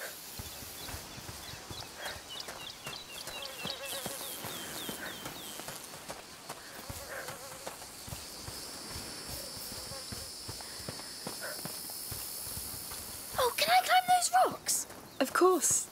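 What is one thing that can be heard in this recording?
Footsteps crunch on gravel and dry grass.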